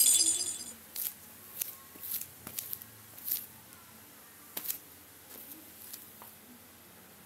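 A young boy speaks quietly and close by.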